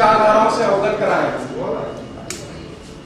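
A middle-aged man speaks into a microphone in a calm, measured voice.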